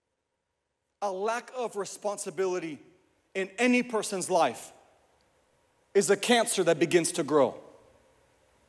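A young man speaks with animation into a microphone.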